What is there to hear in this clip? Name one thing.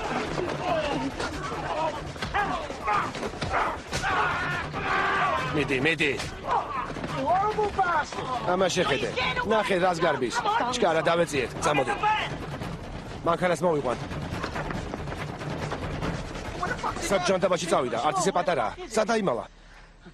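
Young men shout frantically at close range.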